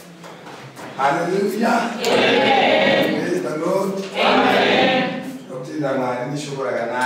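A man speaks loudly to a room of people.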